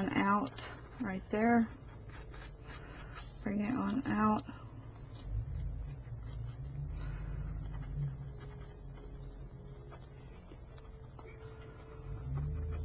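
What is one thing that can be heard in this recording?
A small brush dabs and scrapes softly against a hard surface.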